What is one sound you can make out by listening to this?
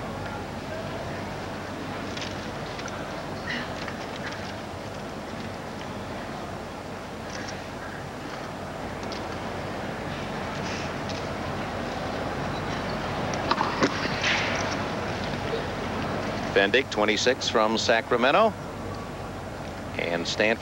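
A crowd murmurs softly in the distance.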